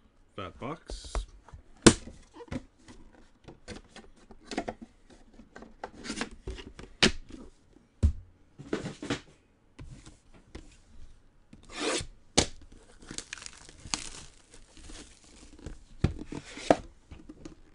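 Hands handle and set down cardboard boxes with light knocks.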